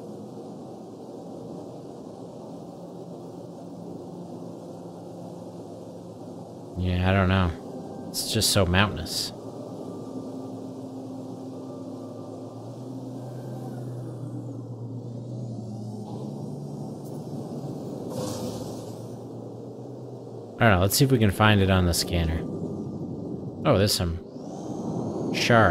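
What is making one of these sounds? A spaceship engine hums steadily as the craft flies.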